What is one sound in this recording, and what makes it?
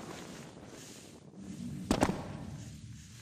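Hands scrape as a person pulls up onto a ledge.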